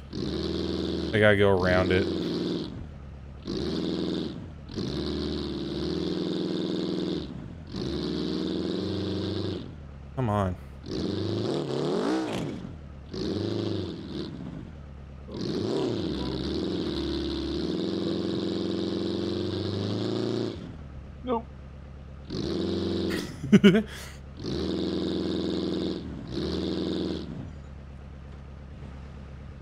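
A buggy engine revs hard in bursts and drops back to idle.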